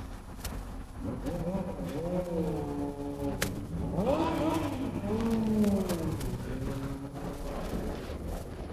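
Men talk loudly nearby outdoors.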